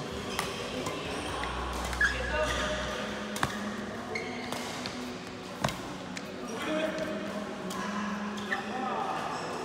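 Shuttlecocks are hit with sharp racket pops in a large echoing hall.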